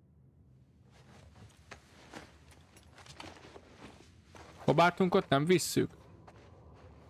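Footsteps tread on a carpeted floor.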